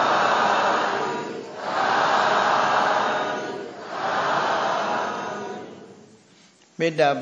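A group of men recite together in unison in a large room.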